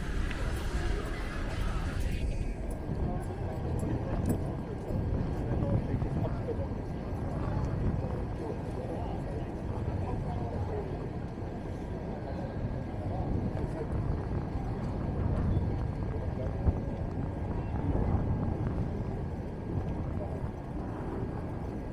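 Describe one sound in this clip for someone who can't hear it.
Low city traffic hums steadily in the distance.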